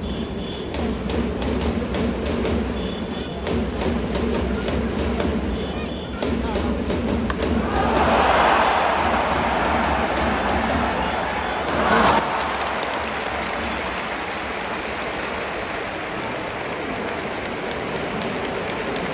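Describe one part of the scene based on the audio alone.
A large stadium crowd chants and murmurs steadily.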